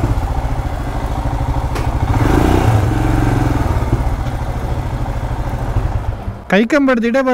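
A motorcycle engine idles with a steady low rumble, then cuts out.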